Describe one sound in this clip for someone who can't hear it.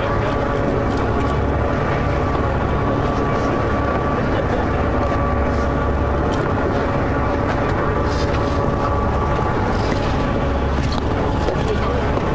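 Waves slosh and splash against a hull.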